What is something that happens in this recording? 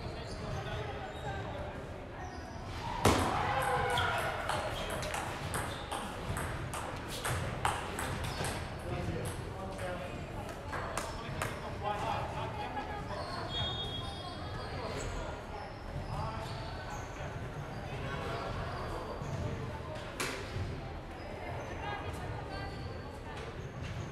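Men talk nearby in a large echoing hall.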